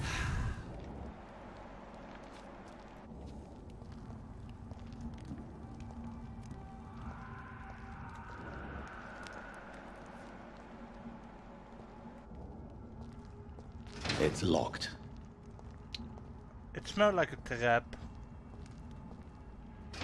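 Footsteps tread slowly on stone.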